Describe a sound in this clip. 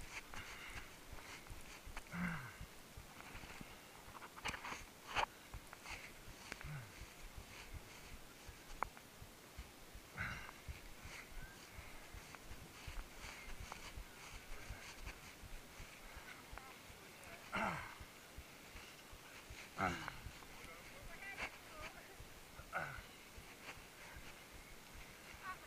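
A runner breathes hard and pants close by.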